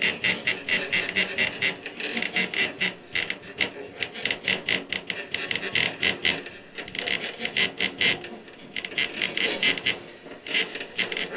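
A tabletop guitar drones and twangs.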